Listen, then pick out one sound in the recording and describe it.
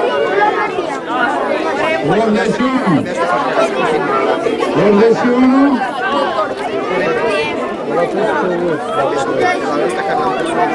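A crowd of children and adults chatters in the background.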